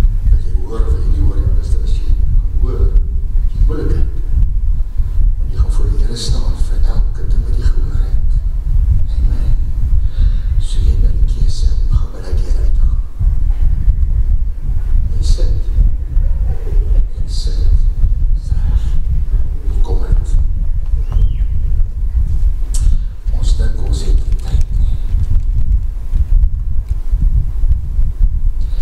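An older man speaks with animation through a microphone, heard over loudspeakers in a large echoing hall.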